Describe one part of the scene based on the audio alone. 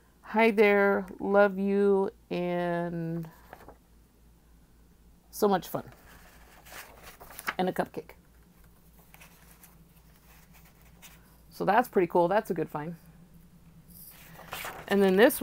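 A thin plastic sheet crinkles softly as hands handle it.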